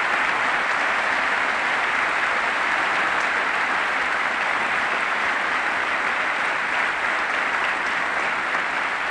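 A large crowd applauds steadily in a big echoing hall.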